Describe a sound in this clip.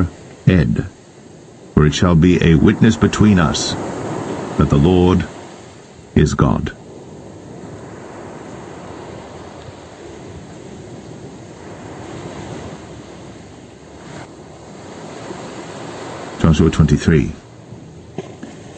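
Waves wash onto a pebble beach.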